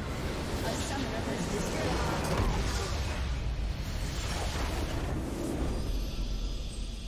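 Magic blasts and explosions crash and crackle loudly in a video game.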